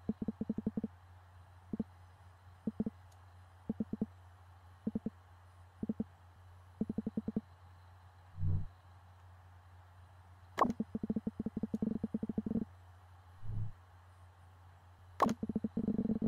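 Rapid electronic blips chatter in short bursts.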